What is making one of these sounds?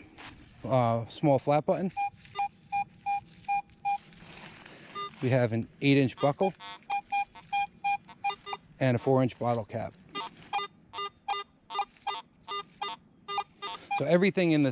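A metal detector gives loud warbling tones that sweep up and down.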